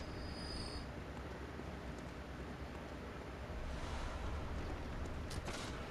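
A large fire crackles nearby.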